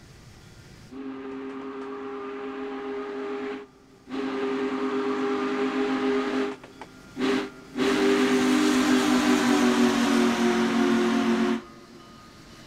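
A steam locomotive whistle blows loudly in long blasts.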